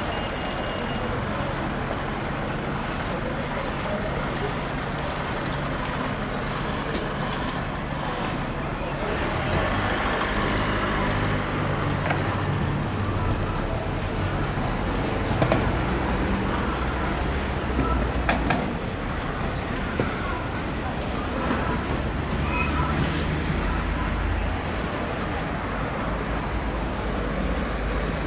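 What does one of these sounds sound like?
Traffic rumbles steadily nearby outdoors.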